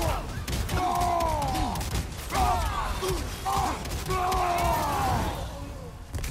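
Heavy blows thud in a fight.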